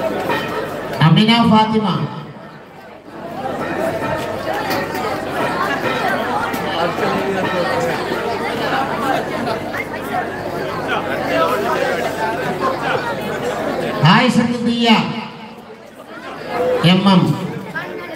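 A man calls out loudly through a loudspeaker.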